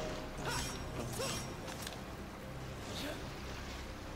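Quick whooshes sound as a game character dodges and rolls.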